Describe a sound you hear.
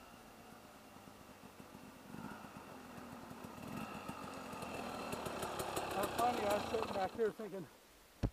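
A dirt bike engine approaches, growing louder as it comes closer.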